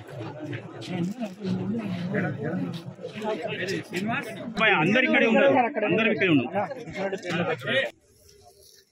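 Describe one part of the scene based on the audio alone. A man speaks with animation to a small crowd outdoors.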